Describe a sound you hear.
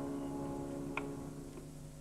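A tabla drum gives a last sharp stroke.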